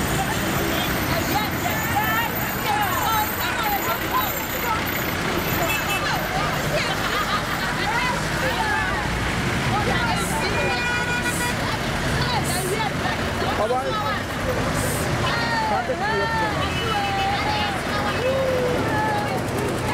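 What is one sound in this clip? A young woman talks loudly and with animation close by.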